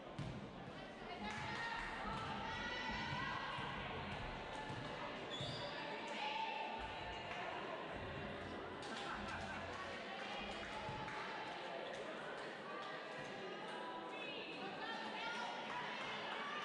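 Voices call out and cheer in a large echoing hall.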